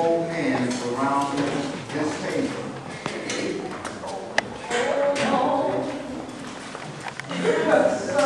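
A man speaks through a microphone in an echoing hall.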